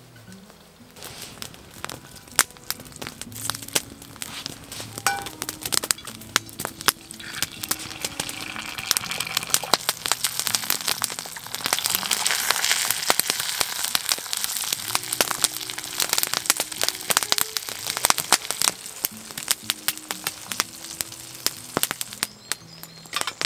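Food sizzles and spits in a hot pan.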